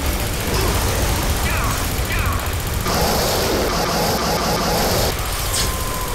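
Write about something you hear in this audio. A laser gun fires in a steady buzzing stream.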